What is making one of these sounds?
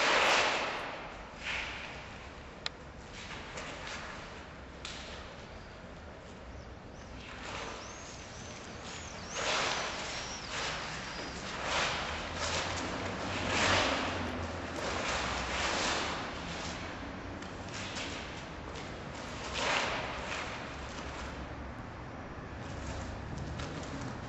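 Footsteps shuffle and scrape on stone.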